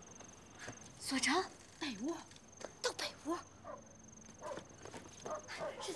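A woman calls out loudly.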